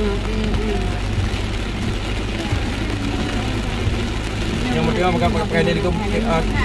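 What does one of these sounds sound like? Heavy rain drums on a car windshield.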